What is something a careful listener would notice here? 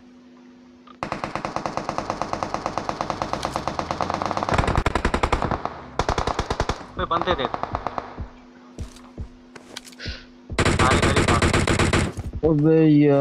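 Rapid bursts of automatic rifle fire crackle.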